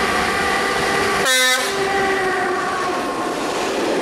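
A locomotive horn blares loudly close by.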